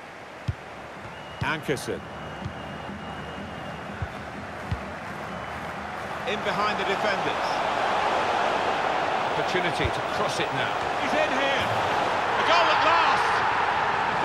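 A stadium crowd roars, growing louder and more excited.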